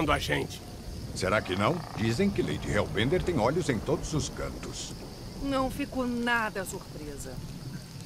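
A man talks with animation in a gruff voice, close by.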